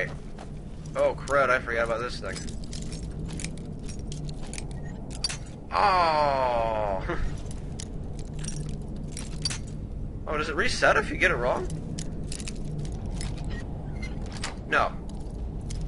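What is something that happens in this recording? A thin metal pick scrapes and clicks inside a lock.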